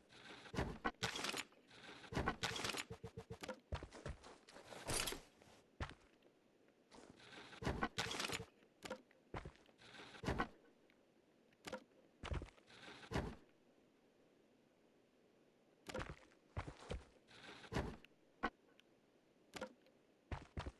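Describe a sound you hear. Metal locker doors rattle and clank as they are searched.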